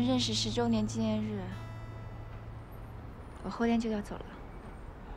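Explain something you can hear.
A young woman speaks softly and calmly nearby.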